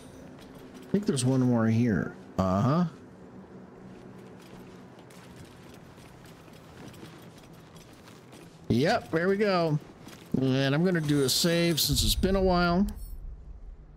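A middle-aged man speaks with animation, close to a microphone.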